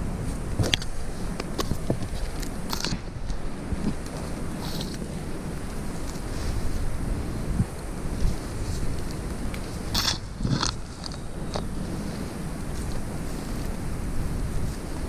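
Dry leaves and twigs crunch underfoot.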